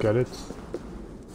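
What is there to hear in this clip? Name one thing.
An older man speaks briefly into a close microphone.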